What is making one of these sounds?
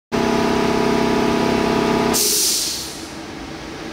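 A CNC lathe spindle spins with a steady whirring hum.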